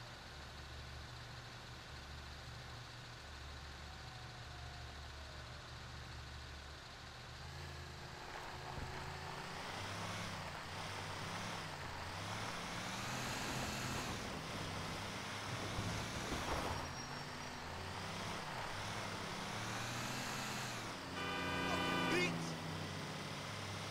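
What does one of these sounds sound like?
A truck engine idles and then rumbles as the truck drives off and gathers speed.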